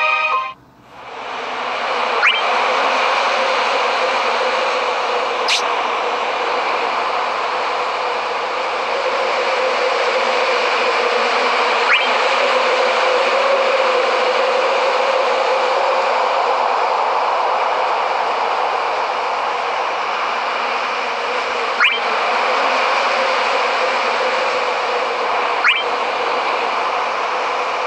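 Calm game music plays steadily.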